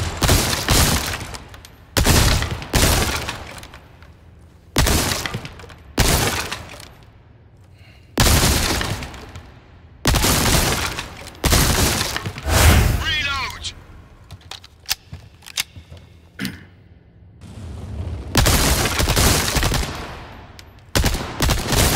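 A rifle fires loud shots that echo in a large hall.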